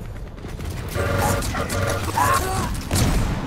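An electric beam weapon crackles and hums.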